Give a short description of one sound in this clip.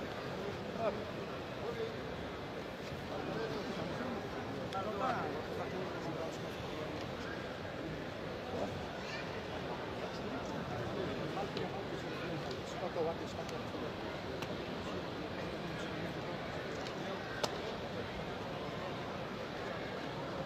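A large crowd murmurs and calls out in an echoing arena.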